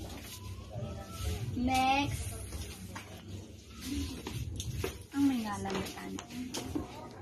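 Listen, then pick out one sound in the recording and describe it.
A young woman speaks in a tearful, emotional voice close by.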